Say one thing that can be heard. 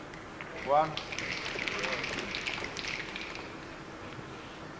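An audience applauds briefly.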